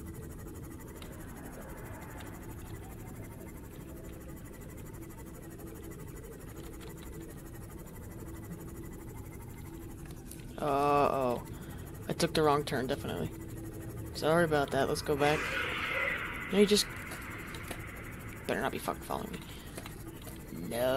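A submarine engine hums low and steadily underwater.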